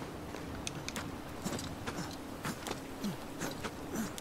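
Hands and boots scrape on rock while climbing.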